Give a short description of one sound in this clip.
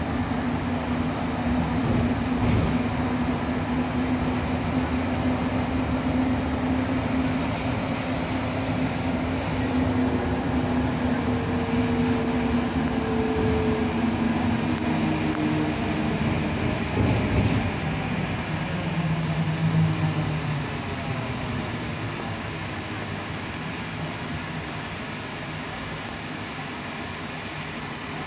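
Metal floor plates rattle and creak as a bus rides along.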